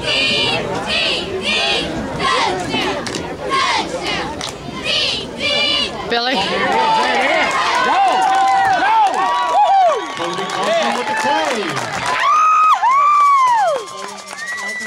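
A crowd cheers and shouts outdoors from a distance.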